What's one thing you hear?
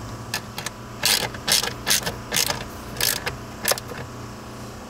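Small plastic parts click and snap into place.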